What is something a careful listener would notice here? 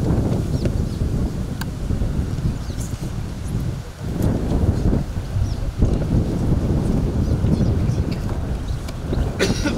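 A young girl recites into a microphone outdoors.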